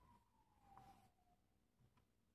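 A marker squeaks briefly as it writes.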